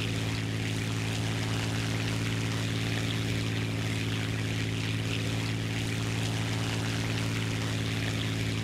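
A propeller plane's engine drones steadily at a low pitch.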